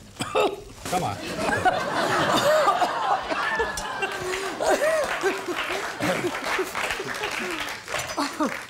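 A middle-aged woman laughs heartily.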